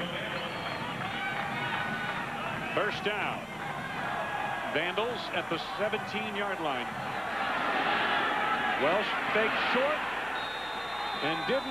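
A large crowd roars and cheers in a stadium.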